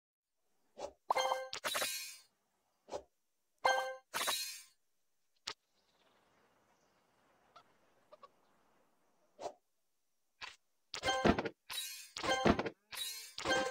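Game chimes and pings ring out in short bursts.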